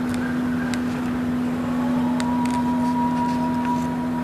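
Paper pages rustle as a book page is turned.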